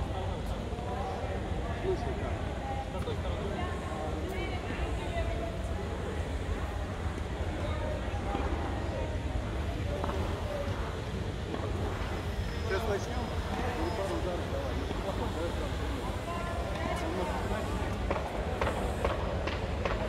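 Tennis balls are struck with rackets, echoing in a large hall.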